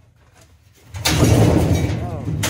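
Sheet metal scrapes and rattles as it is moved.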